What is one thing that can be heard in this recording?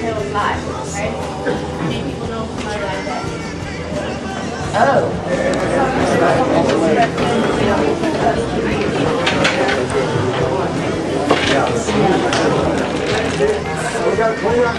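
A crowd of people chatter in an echoing room.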